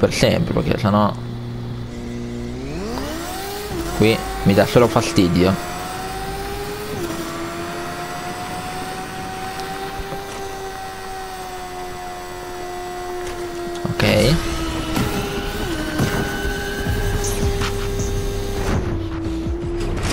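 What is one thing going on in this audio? A motorbike engine hums steadily and rises in pitch as it speeds up.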